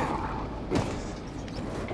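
A hand grabs a metal pole with a dull thud.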